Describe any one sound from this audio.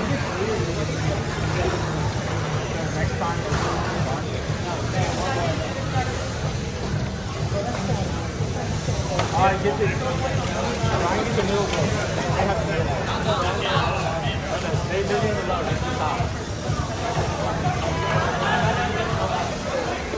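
Robot motors whir as small robots drive around.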